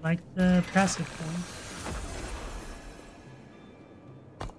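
A magical whoosh swells and then slowly fades.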